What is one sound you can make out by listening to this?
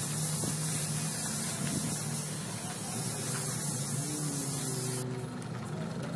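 An airbrush hisses steadily.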